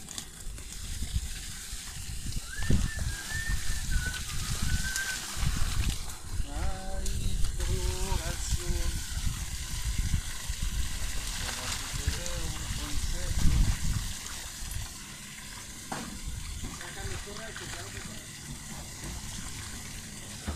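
Water splashes as a net is dragged through shallow water.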